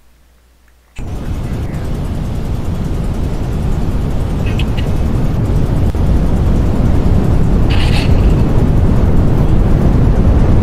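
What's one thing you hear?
Strong wind roars steadily, growing louder.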